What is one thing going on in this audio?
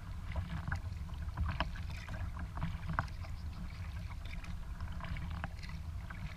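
Water laps and splashes against the hull of a kayak.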